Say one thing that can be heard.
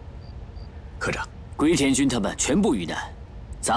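A young man speaks tensely, close by.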